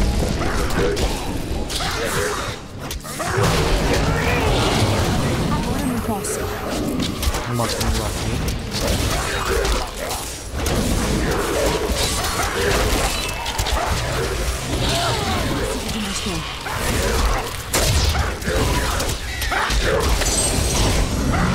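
Spell blasts and magic impacts crackle and boom in a fast game battle.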